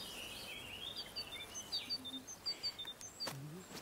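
Laundry cloth rustles softly as it is handled.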